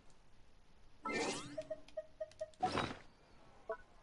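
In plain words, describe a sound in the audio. Soft electronic chimes and clicks play as menus open.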